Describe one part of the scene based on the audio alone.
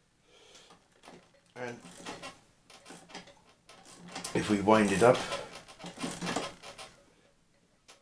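A phonograph crank is wound with soft clicks.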